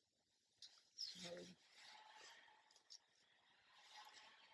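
Dry leaves rustle as an older woman's hands move through them.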